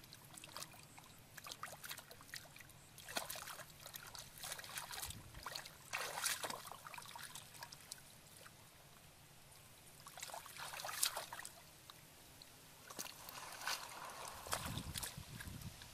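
Hands splash and swish through shallow muddy water and grass.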